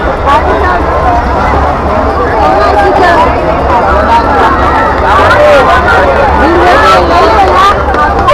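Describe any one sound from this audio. A large crowd of men and women chatters loudly all around, close by, outdoors.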